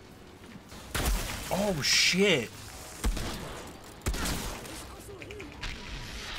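Gunshots fire in bursts with loud bangs.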